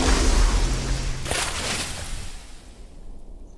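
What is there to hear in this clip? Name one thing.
Flames burst out with a roaring whoosh.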